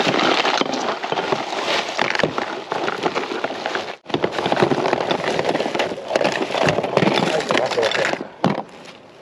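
A plastic bag rustles and crinkles loudly up close.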